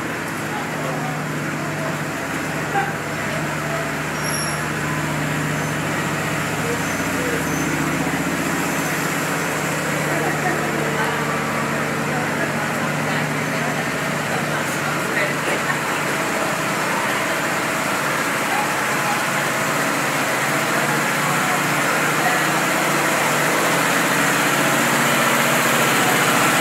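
A train's engine hums steadily close by.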